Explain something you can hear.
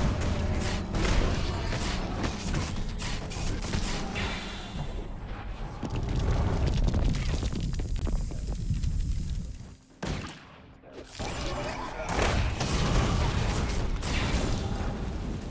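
Weapons strike and clash with loud impacts.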